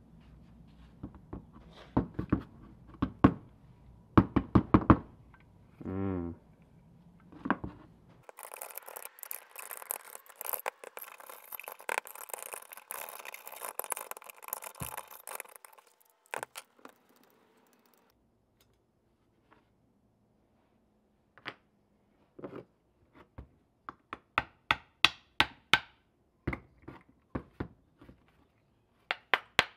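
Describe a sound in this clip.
Metal parts knock and clink against a hard surface.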